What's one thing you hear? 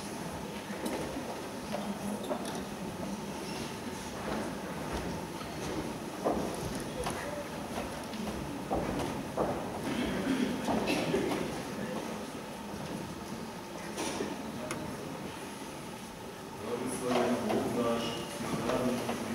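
A crowd murmurs and shuffles in a large echoing hall.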